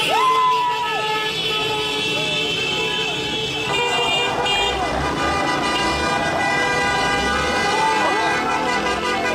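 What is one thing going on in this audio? Many car horns honk over and over, outdoors.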